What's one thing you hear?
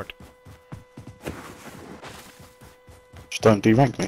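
Footsteps crunch quickly on snow.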